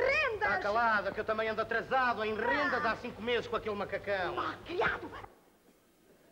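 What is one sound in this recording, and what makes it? A man sings loudly with a tremulous voice, heard through an old scratchy recording.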